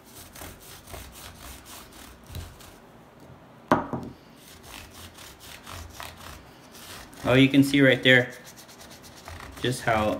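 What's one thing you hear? A brush scrubs quickly against a shoe.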